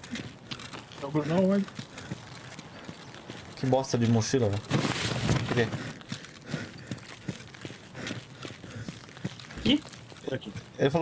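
A young man talks calmly in short bursts, close to a microphone.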